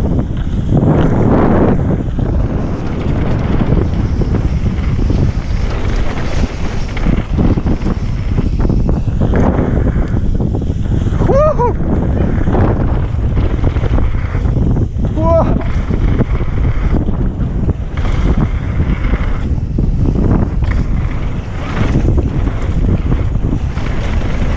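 Mountain bike tyres rumble and crunch over a dirt trail.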